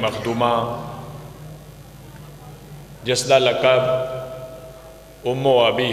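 A man speaks with passion into a microphone over loudspeakers, his voice echoing in a large hall.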